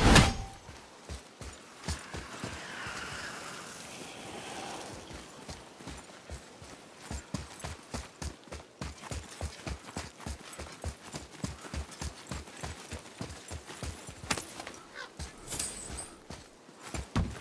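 Heavy footsteps run quickly through grass.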